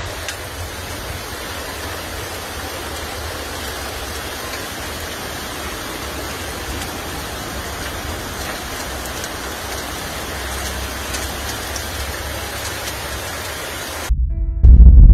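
Floodwater rushes loudly through a street.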